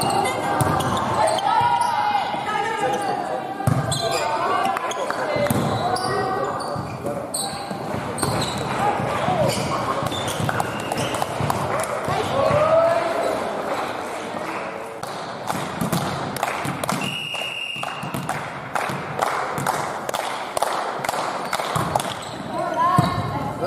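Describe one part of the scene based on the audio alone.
A volleyball is struck hard with hands, echoing in a large hall.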